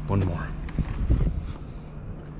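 A hand pats a hard truck bed cover with dull thumps.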